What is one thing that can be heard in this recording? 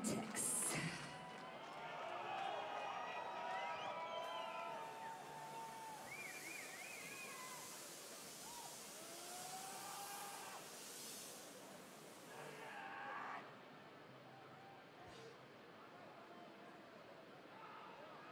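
A large outdoor crowd cheers and whistles.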